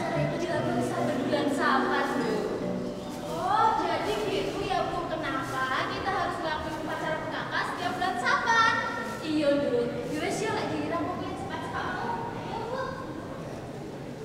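Two young women talk with animation in a large echoing hall.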